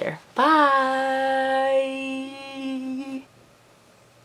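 A young woman sings out a long, excited note close to the microphone.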